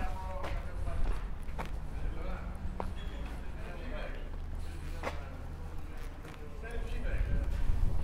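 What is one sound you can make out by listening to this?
Footsteps of a man walking on a paved street draw near and pass.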